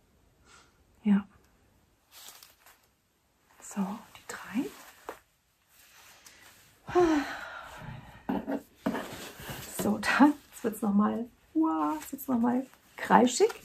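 A middle-aged woman speaks calmly and warmly, close by.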